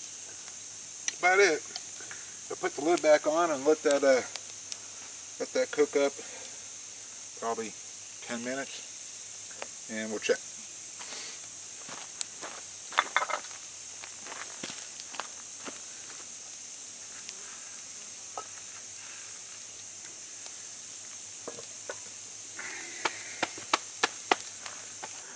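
A wood fire crackles and pops.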